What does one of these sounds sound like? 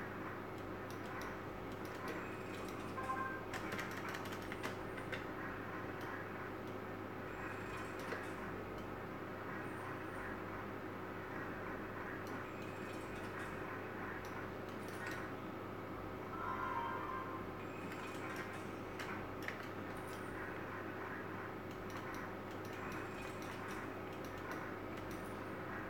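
A slot machine plays short electronic jingles and beeps as its reels spin.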